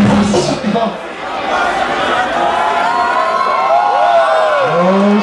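Loud music plays through loudspeakers.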